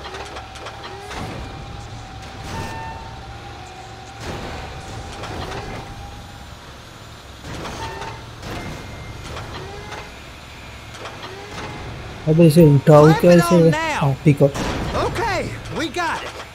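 A heavy vehicle engine idles with a low rumble.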